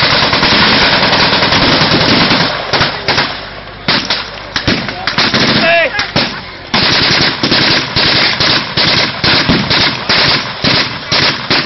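Rifles and machine guns fire in rapid, crackling bursts outdoors.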